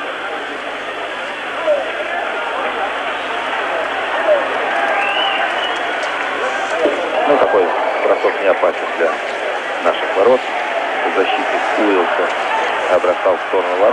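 A puck clacks off sticks and the boards.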